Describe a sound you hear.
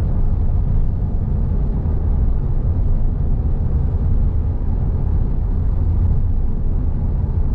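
A car's engine hums steadily from inside the car.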